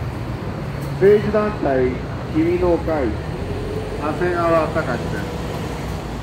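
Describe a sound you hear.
An elderly man speaks through a microphone and loudspeaker, calling out in short phrases.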